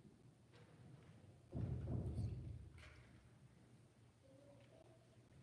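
People murmur quietly in a large echoing hall.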